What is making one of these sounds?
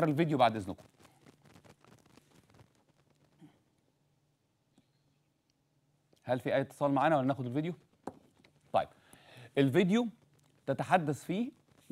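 A middle-aged man speaks steadily into a microphone, with pauses.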